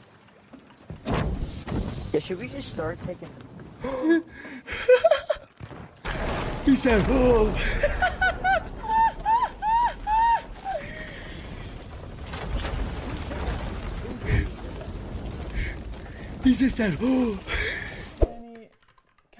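A young man talks and exclaims with animation into a close microphone.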